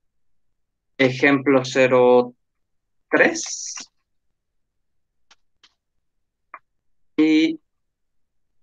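A man speaks calmly and close to a microphone, in short phrases.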